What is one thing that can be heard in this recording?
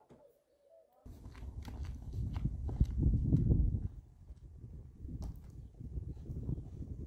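A woman's footsteps crunch on dirt ground.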